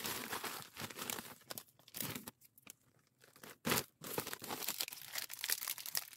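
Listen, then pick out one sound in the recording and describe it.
A plastic mailer bag crinkles and rustles in someone's hands.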